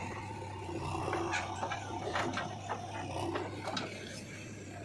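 Clods of soil thud and clatter into a trailer.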